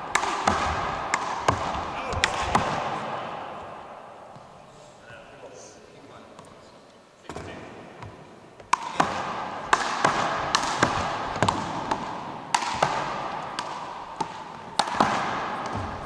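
Rubber balls smack against bodies and the floor, echoing in a large hall.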